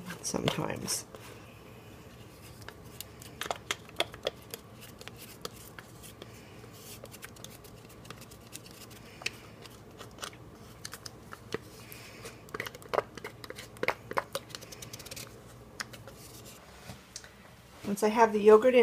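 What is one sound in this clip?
A spatula scrapes and taps against a plastic cup.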